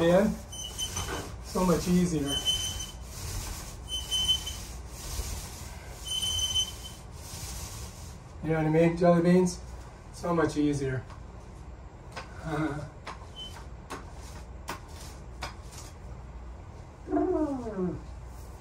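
A paint roller rolls wetly across a wall.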